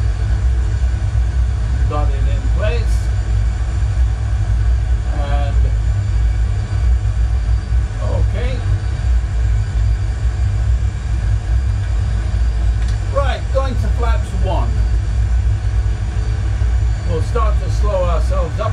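A low engine rumble drones steadily throughout.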